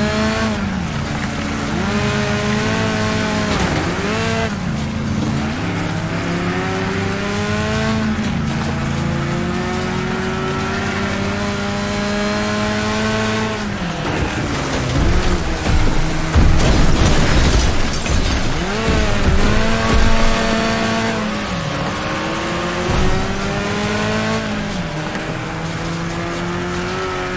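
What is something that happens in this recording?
A car engine revs and whines as it races, rising and falling in pitch.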